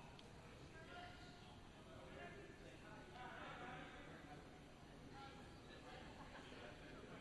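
Several people talk far off in a large echoing hall.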